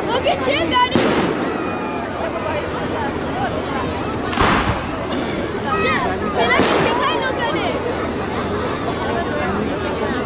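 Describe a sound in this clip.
Fireworks crackle and fizz after bursting.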